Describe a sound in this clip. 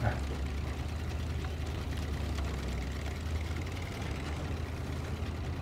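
Truck tyres crunch over rocks and dirt.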